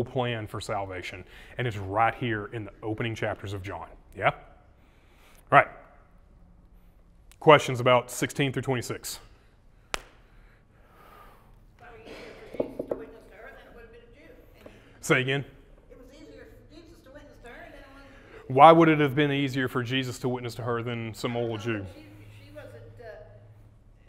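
A man preaches with animation through a microphone in a large room, pausing between phrases.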